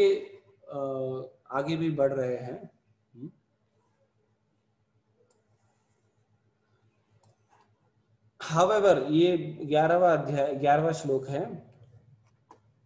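An elderly man speaks calmly and slowly, close by, with long pauses.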